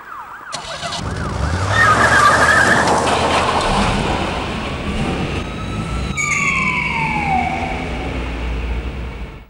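A car engine revs loudly and roars away.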